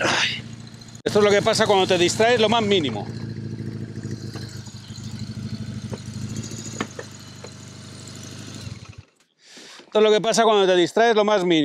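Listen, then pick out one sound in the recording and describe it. A motorcycle engine revs loudly up close, rising and falling in pitch.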